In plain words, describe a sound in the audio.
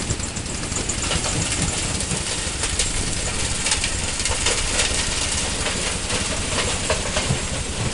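Rocks tumble and clatter from a tipper truck into a steel hopper.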